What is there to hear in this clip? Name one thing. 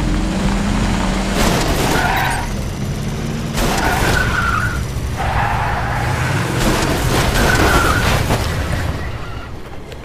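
A heavy vehicle engine rumbles low and steadily.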